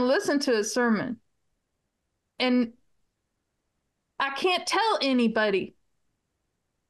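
A middle-aged woman talks with animation over an online call, in short bursts with pauses.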